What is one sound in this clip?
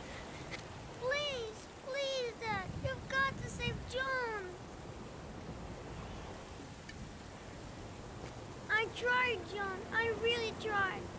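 A boy pleads in a high, emotional voice.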